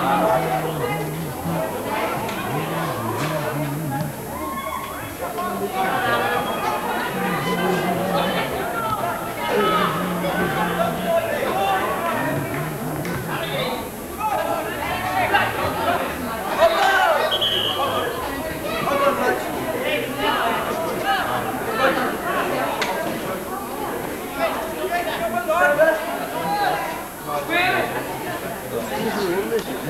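Spectators nearby talk and call out outdoors.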